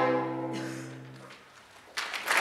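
A string ensemble plays a final chord that rings out and fades in a reverberant room.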